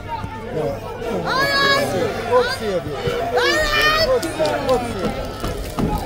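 Young men shout loudly across an open field.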